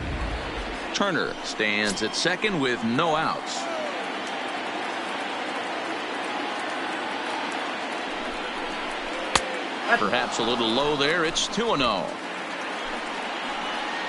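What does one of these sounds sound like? A crowd murmurs steadily in a large stadium.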